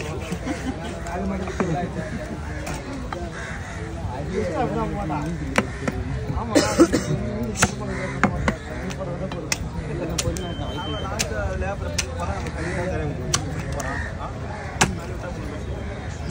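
A heavy knife chops into fish with sharp thuds.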